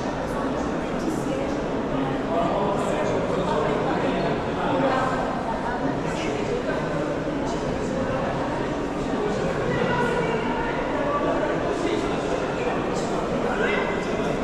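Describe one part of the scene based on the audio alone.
A crowd of people murmurs and chatters in a large echoing hall.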